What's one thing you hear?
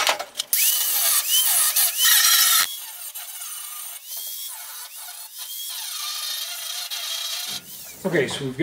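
An angle grinder whines and grinds against metal.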